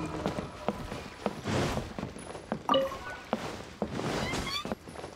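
Footsteps thud quickly on a wooden deck.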